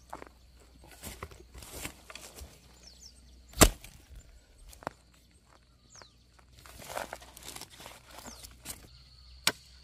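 Loose earth and roots rustle and scrape.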